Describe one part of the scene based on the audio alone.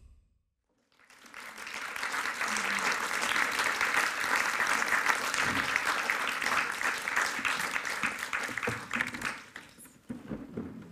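An audience claps and applauds in a large hall, then the applause dies away.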